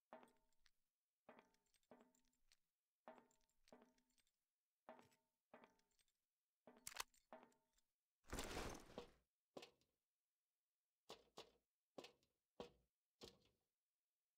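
Footsteps walk at a steady pace on a hard floor.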